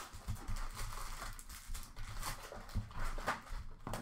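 A foil pack tears open.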